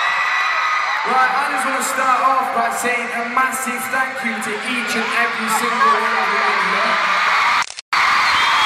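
A young man sings through loudspeakers.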